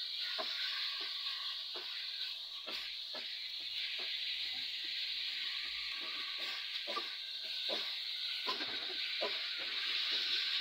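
Meat sizzles in a hot pot.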